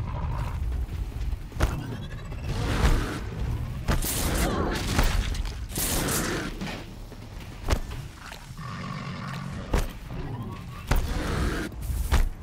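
A large mechanical creature stomps heavily.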